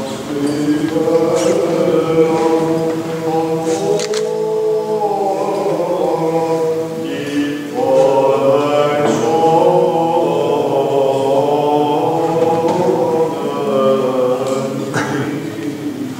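A choir of men's voices chants slowly, echoing in a large hall.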